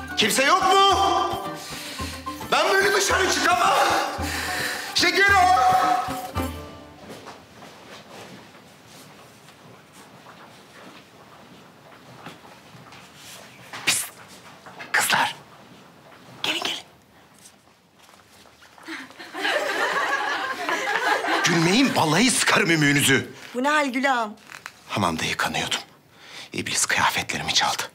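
A middle-aged man speaks anxiously, close by.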